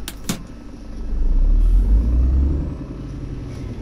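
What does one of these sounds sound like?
A truck engine revs up and rumbles louder, then settles.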